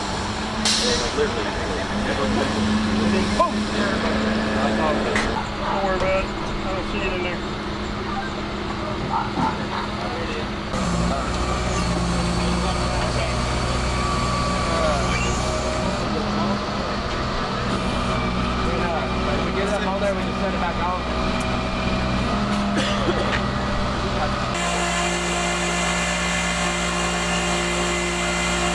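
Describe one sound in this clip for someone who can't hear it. A race car engine idles with a low steady rumble.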